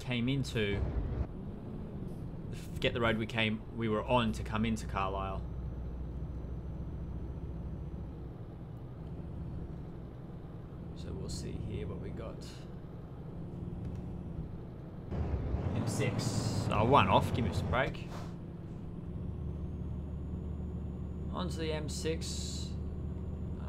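A diesel truck engine drones while cruising.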